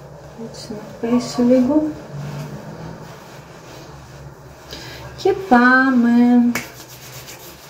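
A woman speaks close to a microphone in a small, slightly echoing room.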